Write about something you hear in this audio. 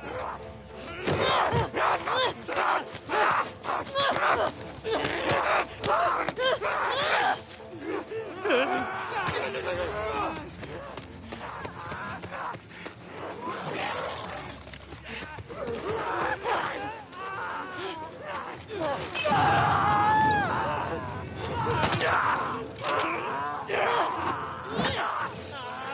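A man snarls and screams aggressively close by.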